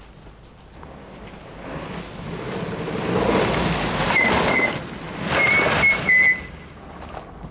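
A car engine approaches and rumbles to a stop.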